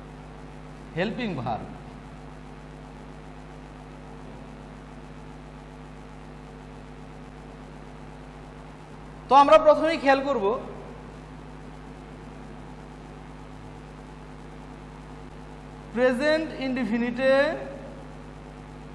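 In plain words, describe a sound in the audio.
A man speaks briefly in short phrases, close by.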